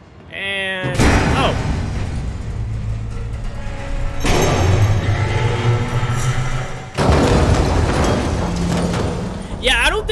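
A heavy metal machine rumbles and groans as chains lower it.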